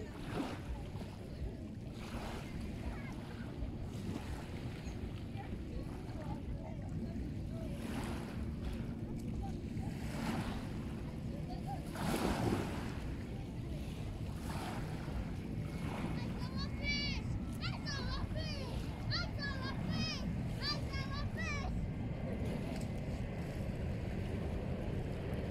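Small waves lap and splash close by, outdoors in a steady wind.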